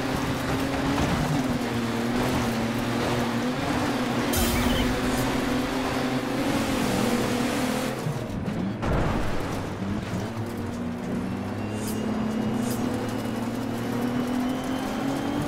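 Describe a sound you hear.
A racing engine roars steadily, its pitch rising and falling with the gears.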